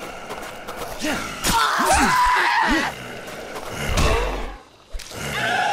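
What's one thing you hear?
A blade slashes and thuds into flesh.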